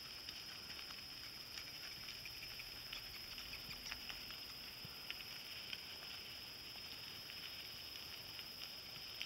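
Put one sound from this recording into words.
A horse's hooves clop faintly on gravel in the distance.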